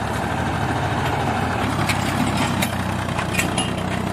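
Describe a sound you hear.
A loaded trailer rattles and clanks over a bumpy dirt track.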